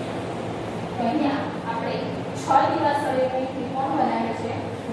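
A woman speaks aloud nearby.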